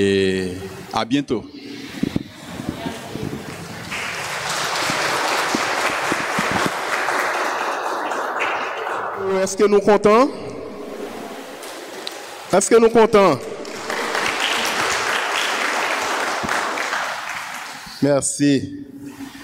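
A man speaks loudly into a microphone, heard through loudspeakers in an echoing hall.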